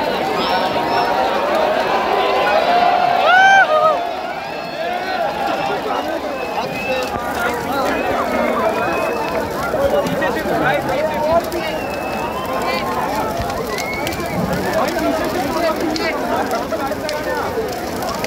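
A bonfire roars and crackles.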